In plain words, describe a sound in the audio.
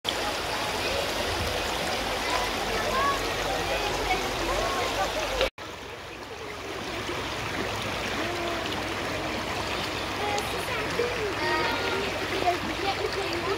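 A river flows and babbles over stones outdoors.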